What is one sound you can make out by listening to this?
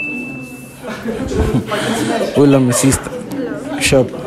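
A crowd of young people chatters and cheers in an echoing room.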